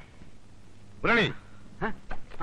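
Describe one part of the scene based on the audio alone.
A middle-aged man exclaims loudly.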